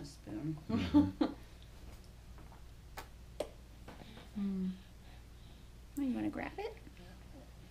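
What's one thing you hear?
A young woman speaks softly and playfully up close.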